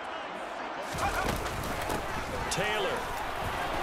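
Football players collide with thuds.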